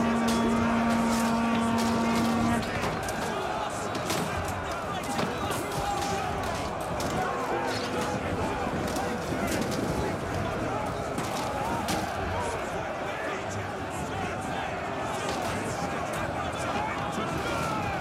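A large crowd of soldiers shouts and roars in battle.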